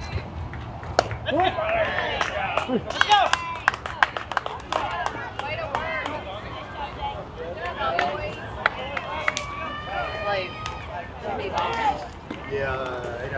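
Young girls shout and cheer excitedly from nearby.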